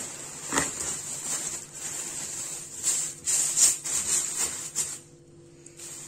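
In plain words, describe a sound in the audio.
Cornflakes crunch as they are crushed by hand.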